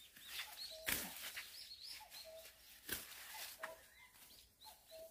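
Leafy plants rustle as someone pushes through them.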